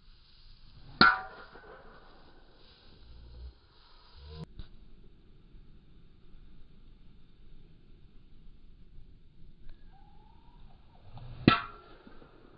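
A golf driver cracks against a ball off a tee.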